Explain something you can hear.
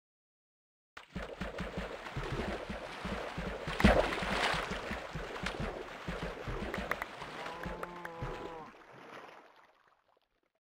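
Water rushes and splashes.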